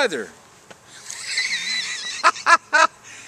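An older man laughs.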